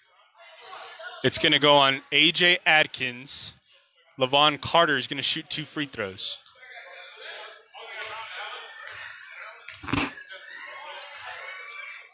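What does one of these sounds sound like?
Sneakers squeak and shuffle on a hard floor in an echoing gym.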